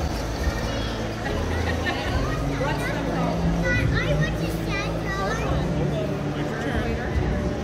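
A crowd of adults and children chatter nearby in a large, echoing hall.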